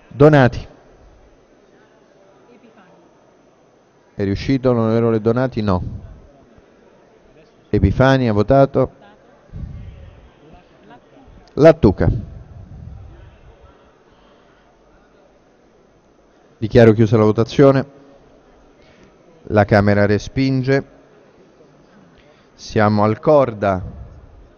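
A man speaks into a microphone in short bursts, echoing in a large hall.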